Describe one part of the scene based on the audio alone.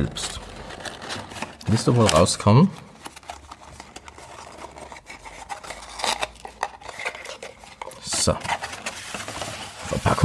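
Cardboard packaging rustles and scrapes as it is handled.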